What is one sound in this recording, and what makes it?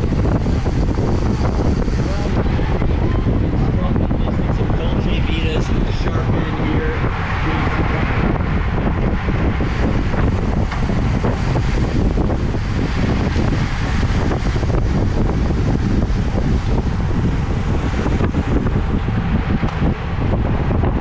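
Bicycle tyres hum on asphalt.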